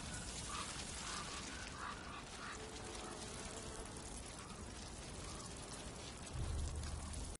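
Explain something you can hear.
Rats squeak and chitter nearby.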